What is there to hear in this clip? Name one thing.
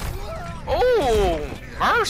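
An explosion bursts with a loud boom.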